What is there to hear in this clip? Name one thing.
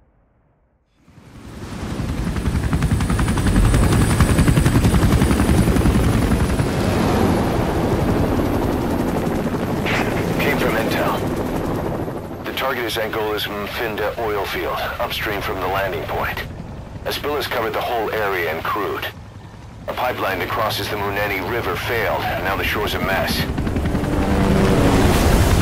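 A helicopter's rotor thumps loudly as it flies past.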